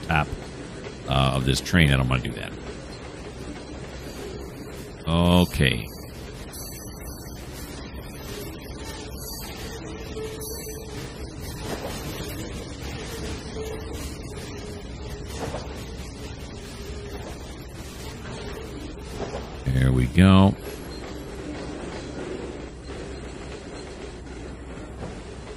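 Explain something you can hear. A freight train rumbles and clanks slowly along the tracks.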